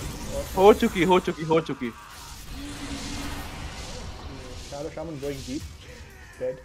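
Magical spell effects whoosh and crackle during a fight.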